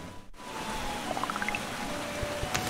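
A short rising chime of video game tones plays.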